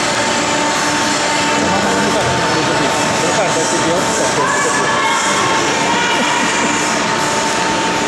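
Hockey sticks clack against the ice and a puck.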